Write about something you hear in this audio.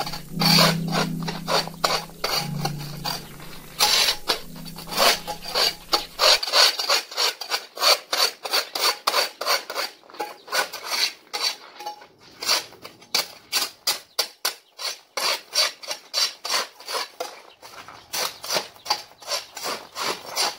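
A snow shovel scrapes repeatedly across pavement.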